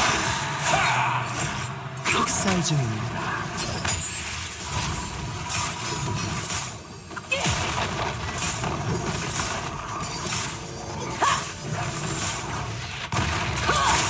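Video game spell effects whoosh and burst in quick succession.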